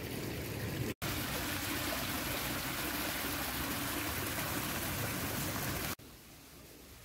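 Water splashes steadily down a small weir.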